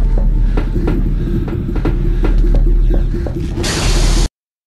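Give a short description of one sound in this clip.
Footsteps clang on a metal floor at a brisk pace.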